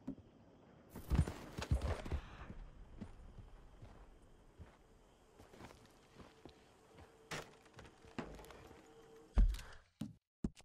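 A horse's hooves clop on stony ground.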